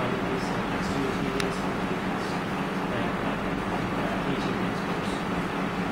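Paper rustles as a woman handles sheets.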